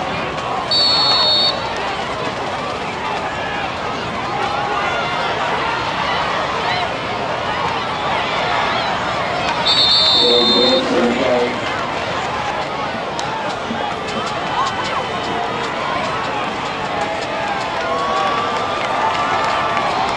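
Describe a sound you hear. A crowd cheers and chatters steadily outdoors.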